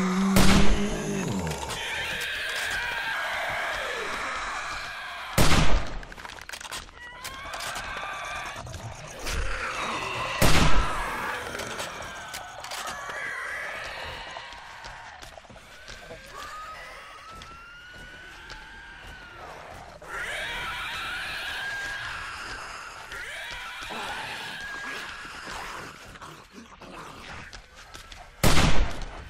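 A shotgun fires loud single blasts.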